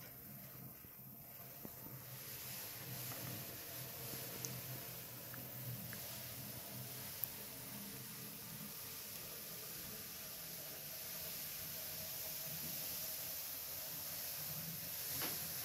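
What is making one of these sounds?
A small toy tractor and harrow roll and rattle softly across a wooden tabletop.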